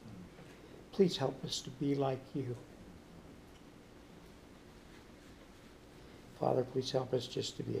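An elderly man speaks calmly nearby.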